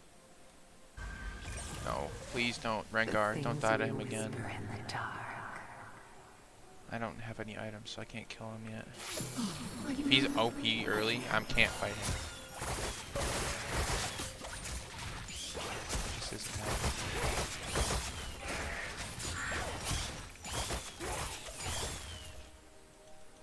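Game combat sounds whoosh, crackle and clash in bursts.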